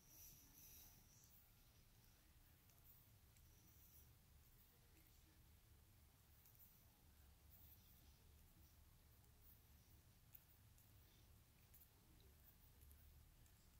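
A stylus taps lightly on a phone's touchscreen.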